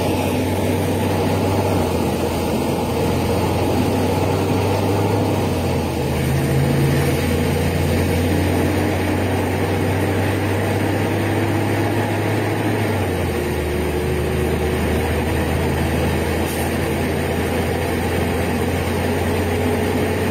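A city bus's rear-mounted six-cylinder diesel engine drones, heard from inside the bus, and its pitch shifts partway through.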